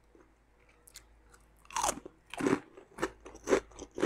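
A young woman crunches a chip.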